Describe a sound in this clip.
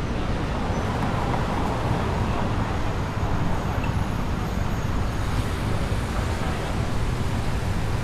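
Traffic hums steadily on a nearby road outdoors.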